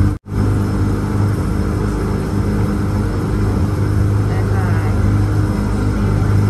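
A train rumbles and hums steadily.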